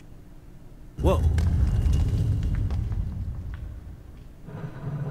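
A heavy hatch in the floor scrapes open with a low rumble.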